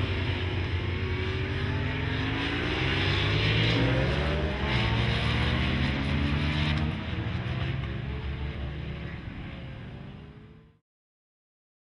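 A motorcycle engine roars loudly as it speeds past, rising and falling in pitch with gear changes.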